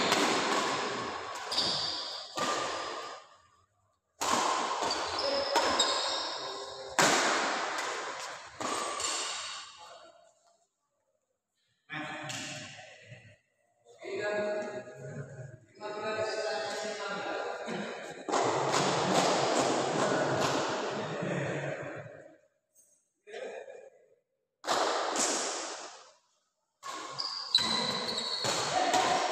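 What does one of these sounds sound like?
Badminton rackets strike a shuttlecock in an indoor hall.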